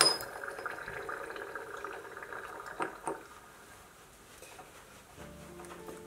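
Beer foam fizzes and crackles softly in a glass jar.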